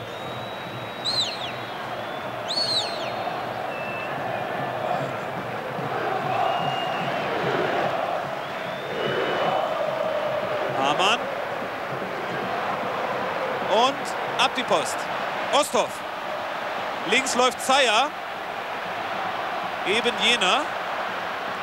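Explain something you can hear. Fans in a stadium crowd whistle shrilly in short bursts.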